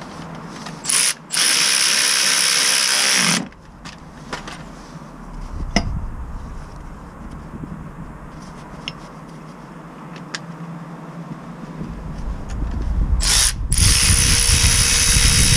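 A power ratchet whirs loudly in short bursts.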